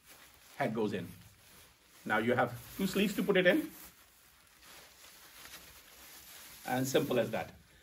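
An older man speaks calmly nearby, in short phrases.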